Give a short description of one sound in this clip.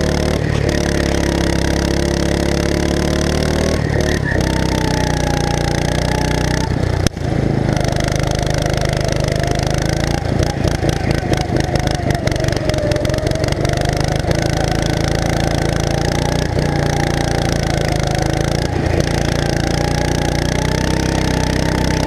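Other go-kart engines whine nearby.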